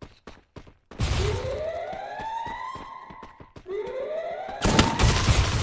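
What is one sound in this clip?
A game's ice wall springs up with a rising whoosh.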